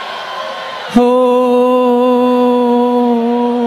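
A woman sings a long, steady note through a microphone.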